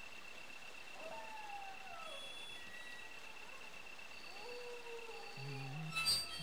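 An iron gate creaks open.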